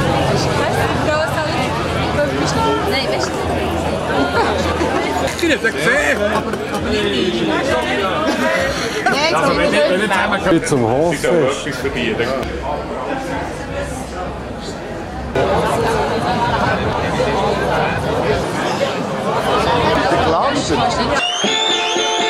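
A crowd of adults chatters and laughs outdoors.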